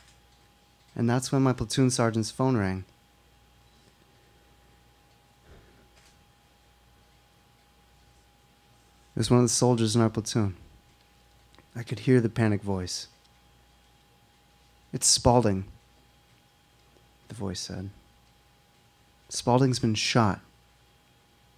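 A young man reads out calmly into a microphone, in short phrases with pauses.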